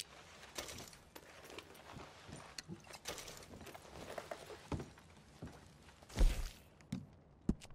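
Hands rummage through items in a wooden chest.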